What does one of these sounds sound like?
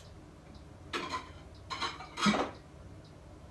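Items knock and clink as someone rummages in a refrigerator.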